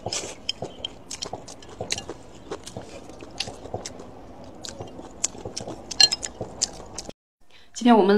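A young woman licks a plate with wet smacking sounds.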